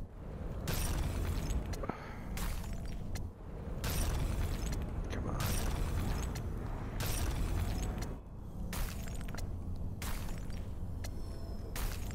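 Whooshing, shattering game effects burst out again and again.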